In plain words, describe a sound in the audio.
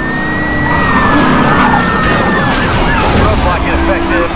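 Cars crash loudly with shattering debris.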